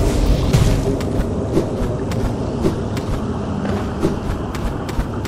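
Quick light footsteps tap.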